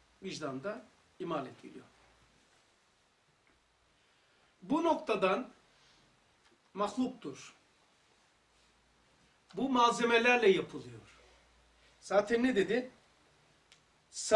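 An older man speaks calmly and slowly, with pauses, close to a microphone.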